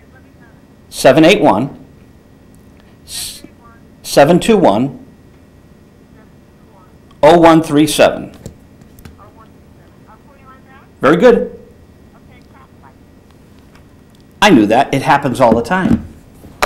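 A middle-aged man speaks with animation in short bursts, close to a microphone.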